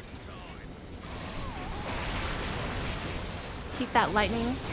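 Flames roar in a fiery explosion.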